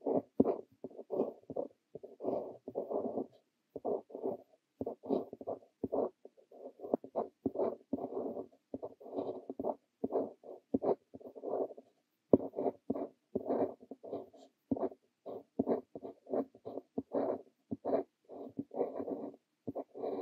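A fountain pen nib scratches across paper in short strokes, close up.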